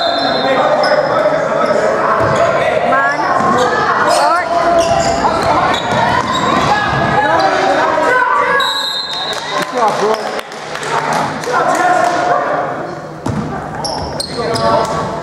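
Basketball players' sneakers squeak on a hardwood court.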